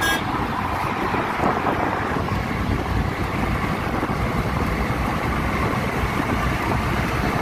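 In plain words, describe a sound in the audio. Tyres roar on asphalt.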